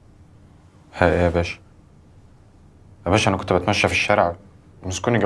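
A young man speaks quietly and seriously, close by.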